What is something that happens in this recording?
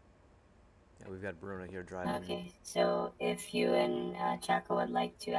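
A man talks through a headset microphone.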